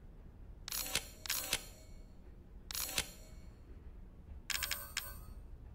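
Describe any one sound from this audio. Short metallic clicks and chimes sound several times.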